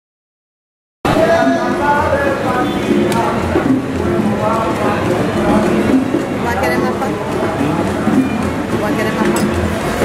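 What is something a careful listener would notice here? A crowd of men and women chatter and call out outdoors at a distance.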